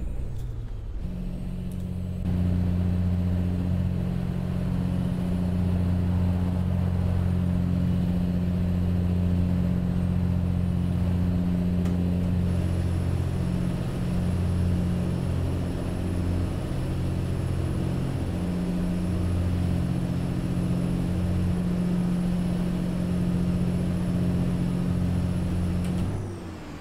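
A heavy truck engine rumbles steadily.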